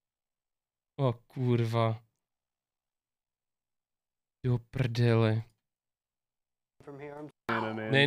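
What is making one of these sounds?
A young man speaks animatedly into a close microphone, in short bursts.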